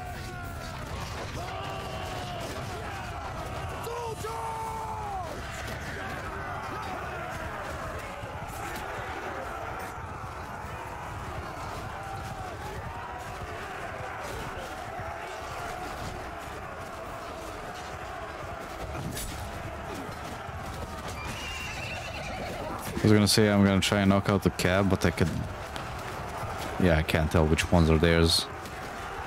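Swords and shields clash in a large battle.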